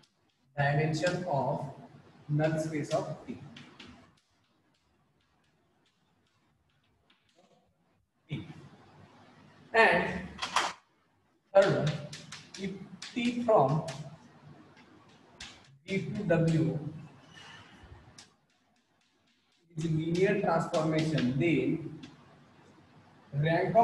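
A man speaks clearly and steadily, as if teaching, close by.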